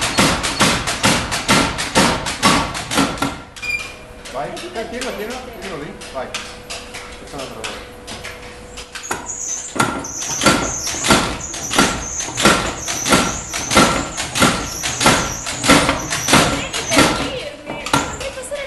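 A power hammer pounds hot metal in fast, heavy blows.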